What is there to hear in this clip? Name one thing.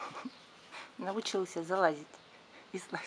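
A puppy whines and yelps close by.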